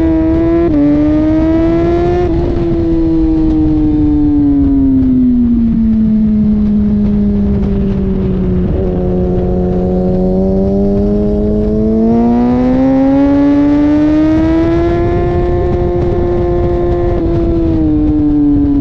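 A motorcycle engine roars close by, dropping in pitch through a bend and then revving back up.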